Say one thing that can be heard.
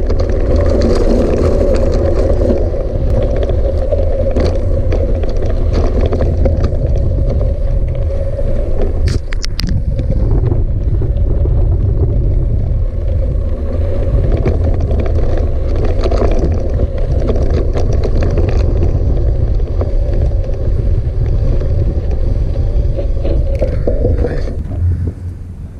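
Wind rushes loudly past, buffeting the microphone.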